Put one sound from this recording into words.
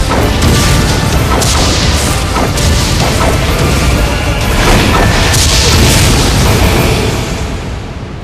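Explosions burst and rumble loudly outdoors.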